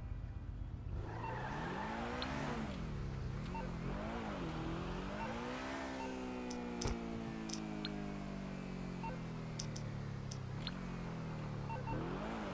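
A sports car engine roars and revs up and down as it speeds along.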